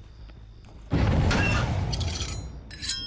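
A metal locker door bangs shut.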